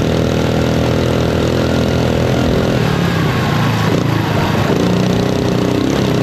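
An engine roars and revs up close.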